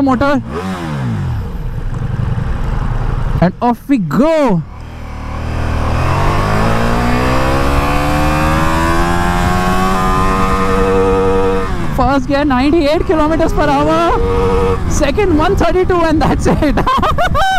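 A motorcycle engine revs hard and rises in pitch as the bike accelerates through the gears.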